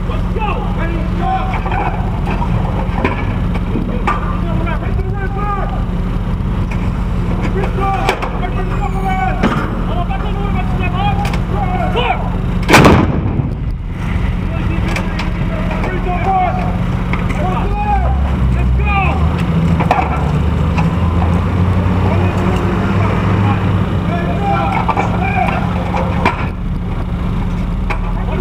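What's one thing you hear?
Men shout commands outdoors.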